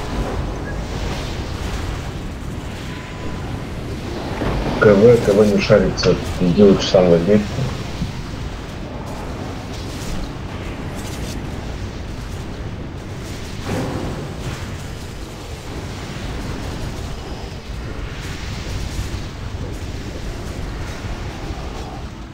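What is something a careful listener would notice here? Magic blasts crackle and whoosh amid the clash of a fight.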